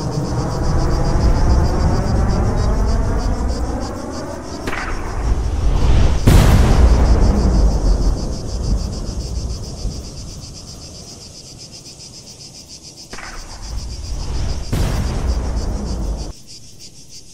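Jet engines roar loudly overhead, rising and falling as the aircraft pass.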